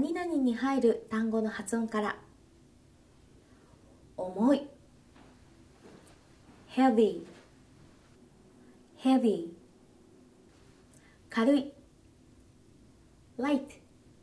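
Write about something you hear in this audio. A young woman speaks calmly and clearly into a close microphone, saying short words one at a time with pauses between.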